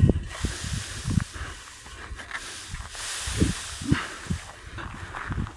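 A rake scrapes and rustles through dry grass.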